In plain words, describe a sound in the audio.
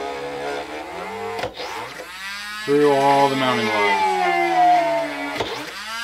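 A rotary tool whines at high speed, its pitch rising and falling as it cuts.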